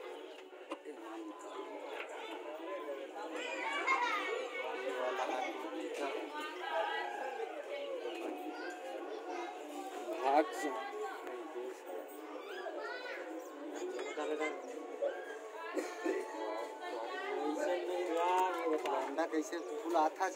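Young men talk nearby.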